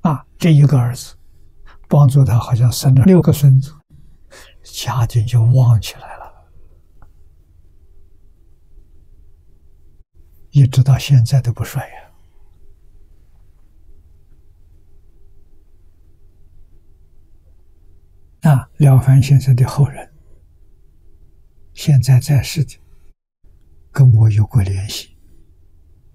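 An elderly man speaks calmly and slowly in short phrases, close to a microphone.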